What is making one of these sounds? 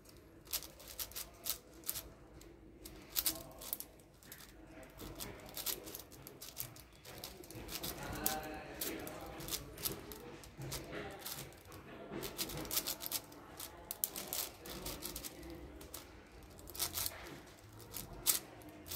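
Plastic puzzle cube layers click and clack as they turn rapidly, close by.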